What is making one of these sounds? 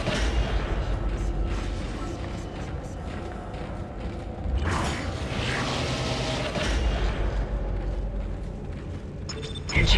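Heavy armored footsteps clank on a metal floor.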